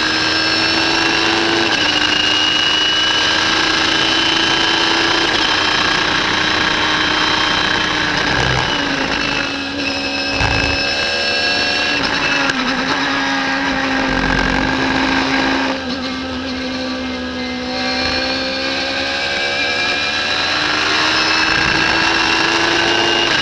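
A racing car engine roars at high revs, dropping in pitch when slowing for corners and rising again on acceleration.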